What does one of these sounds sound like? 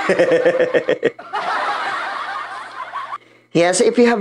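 A young man laughs close to a microphone.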